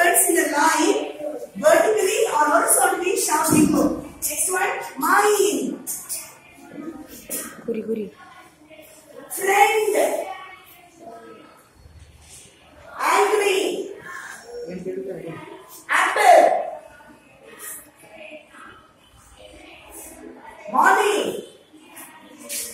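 A woman speaks loudly and with animation in an echoing room.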